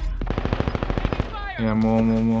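A gun fires in a rapid burst.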